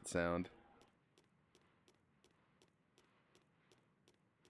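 Light footsteps patter softly.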